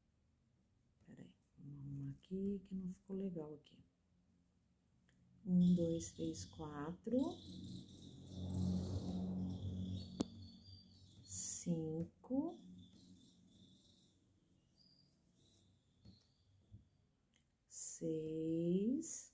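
A crochet hook softly rustles and pulls through yarn.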